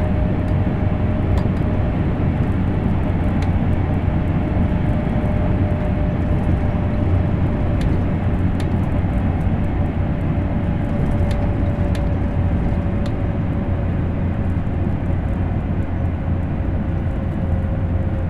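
A train rumbles steadily along the tracks at high speed.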